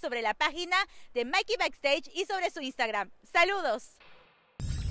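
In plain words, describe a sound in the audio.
A young woman talks with animation into a microphone outdoors.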